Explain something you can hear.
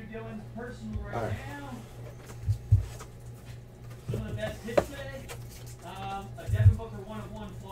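Cardboard box lids thump and rustle as hands handle them.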